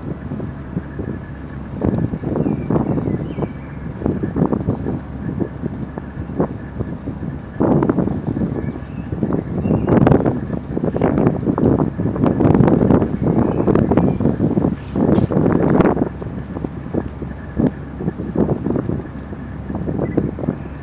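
A flag flaps in the wind.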